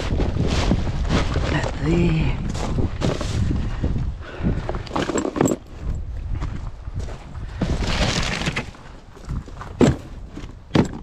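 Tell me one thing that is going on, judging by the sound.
Outdoors, wind rumbles on the microphone.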